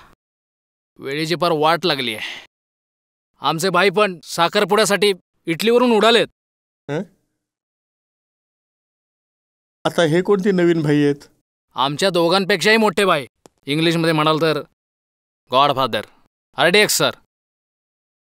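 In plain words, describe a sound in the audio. A middle-aged man speaks tensely and angrily up close.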